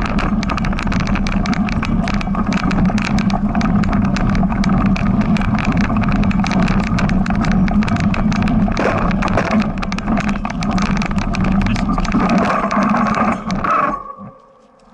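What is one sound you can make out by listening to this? A bicycle rattles and bumps along a rough dirt track.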